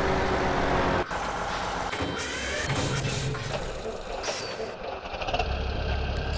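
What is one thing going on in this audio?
A diesel locomotive engine rumbles.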